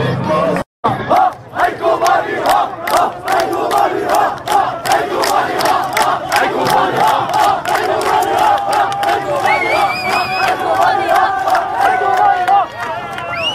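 Protesters clap their hands in rhythm.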